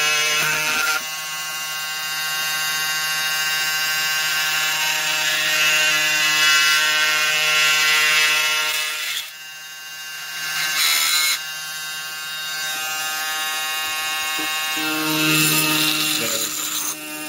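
An oscillating power tool buzzes with a steady high whine.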